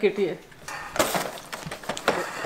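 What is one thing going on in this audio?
A cardboard box rustles in someone's hands.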